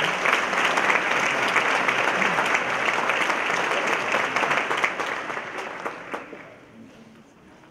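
An audience applauds loudly in a large hall, and the applause slowly fades.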